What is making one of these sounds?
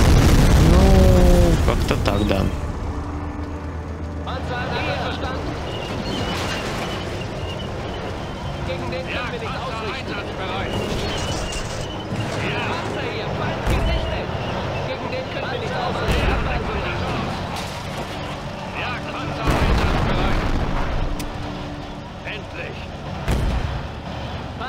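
Explosions boom heavily, one after another.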